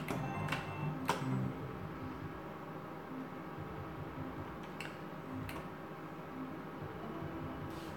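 Slot machine reels spin and click to a stop.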